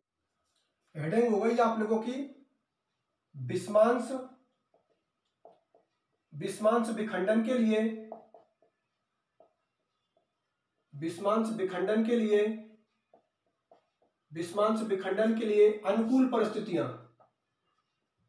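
A young man speaks calmly and clearly, close by, in short phrases with pauses.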